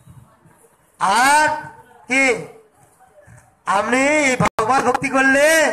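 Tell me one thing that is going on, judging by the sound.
A man sings loudly in long, drawn-out phrases close by.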